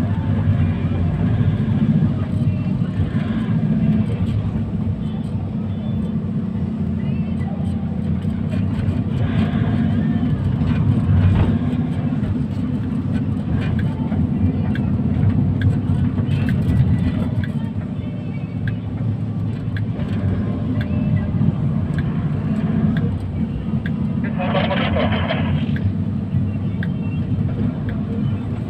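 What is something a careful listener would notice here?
Passing cars whoosh by close outside.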